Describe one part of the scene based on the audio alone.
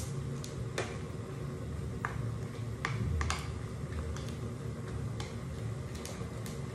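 Wooden utensils scrape and clack against a pan while noodles are tossed.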